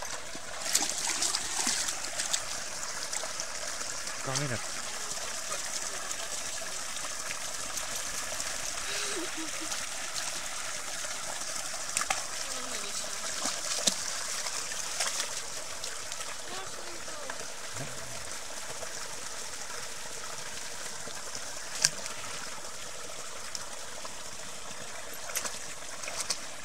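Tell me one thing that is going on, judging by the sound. A dog splashes through shallow water.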